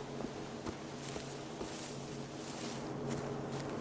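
Dry grass rustles as something brushes through it.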